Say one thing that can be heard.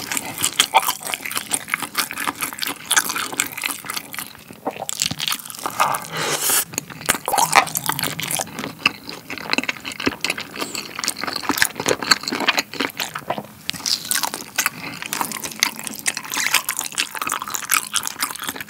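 Sauce-covered food squelches and crinkles in a gloved hand.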